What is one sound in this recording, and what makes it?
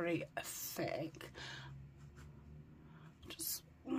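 Cloth rustles and crinkles.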